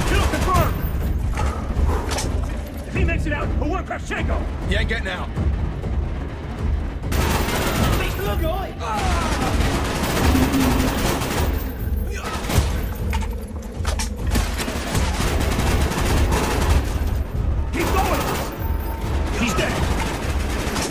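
Rifle gunfire bursts rapidly and loudly.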